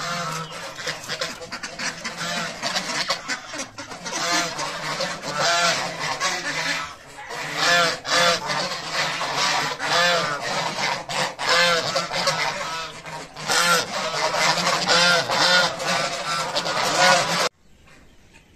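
Geese honk loudly and repeatedly close by.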